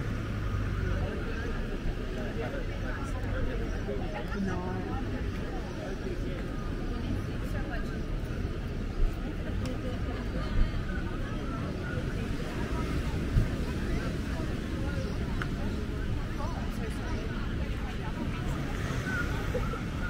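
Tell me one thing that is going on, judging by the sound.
A crowd of men and women chat and murmur nearby outdoors.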